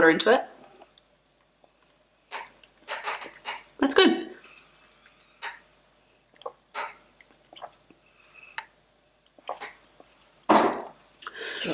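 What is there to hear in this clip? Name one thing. A young woman sips loudly through a straw.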